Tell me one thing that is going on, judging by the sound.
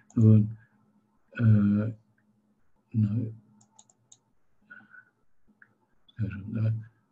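An elderly man speaks calmly in short phrases into a microphone.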